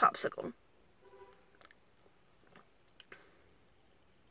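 A young woman sips a drink from a can.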